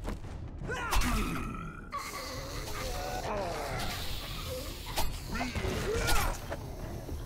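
A knife strikes flesh with sharp wet thuds.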